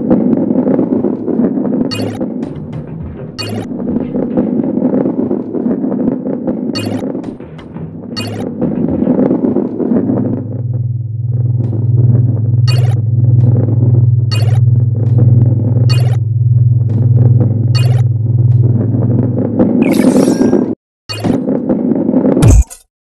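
A ball rolls along a wooden track with a steady low rumble.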